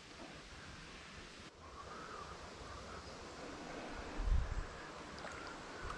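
A paddle dips and splashes in calm water.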